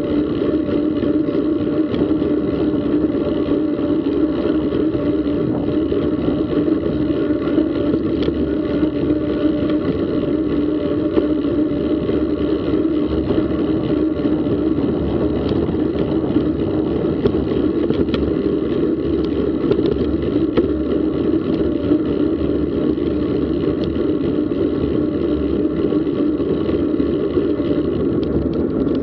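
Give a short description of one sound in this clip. Bicycle tyres roll steadily along a paved path.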